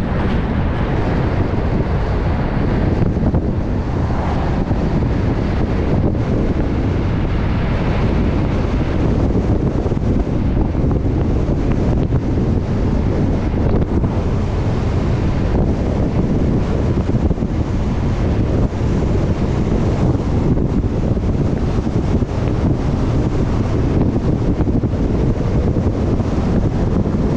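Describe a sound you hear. Tyres roll steadily along a paved road.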